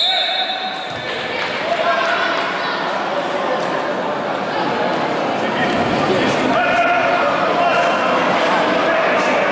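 A crowd of spectators chatters and shouts in an echoing sports hall.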